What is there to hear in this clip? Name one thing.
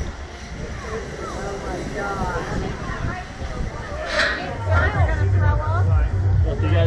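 A young woman laughs and talks excitedly close by.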